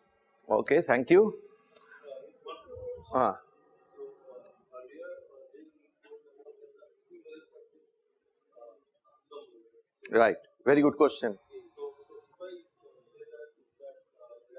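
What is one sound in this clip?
A middle-aged man lectures calmly through a clip-on microphone.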